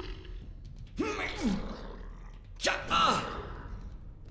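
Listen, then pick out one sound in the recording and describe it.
A sword swishes and strikes in a fight.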